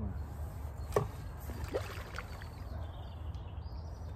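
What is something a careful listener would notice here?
Bait splashes into the water.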